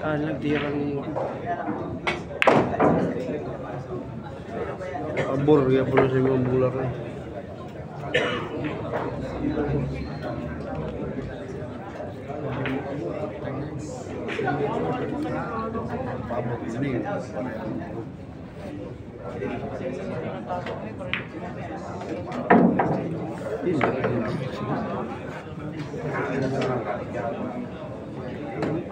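A crowd of men murmurs and chatters in the background.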